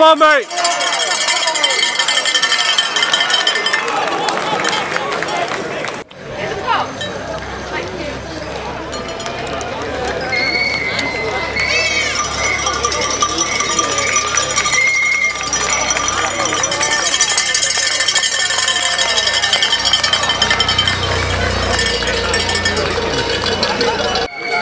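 A roadside crowd cheers and shouts loudly outdoors.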